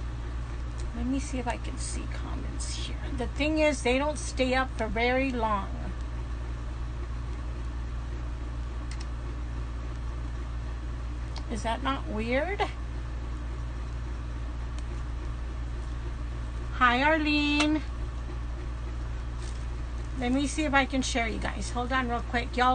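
A middle-aged woman talks calmly close to a phone microphone, in short bursts with pauses.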